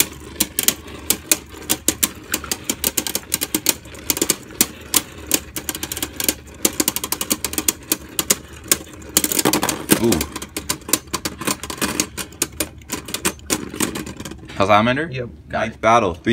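Spinning tops clatter and click against each other in a plastic arena.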